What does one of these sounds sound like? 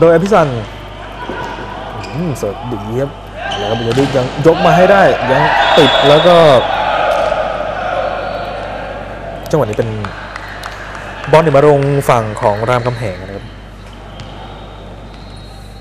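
A volleyball is struck by hand during a rally in an echoing indoor hall.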